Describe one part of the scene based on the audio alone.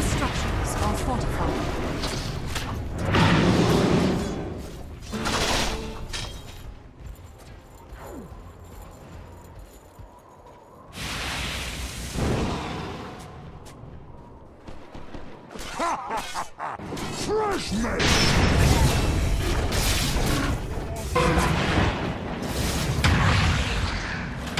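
Magical blasts and clashing battle sounds burst in quick succession.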